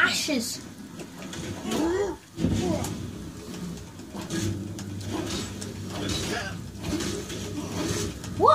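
A creature growls and snarls up close.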